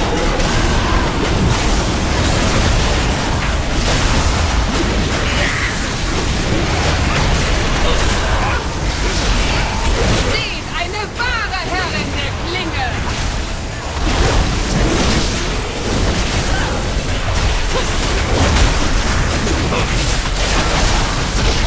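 Game combat effects crash, whoosh and clang continuously.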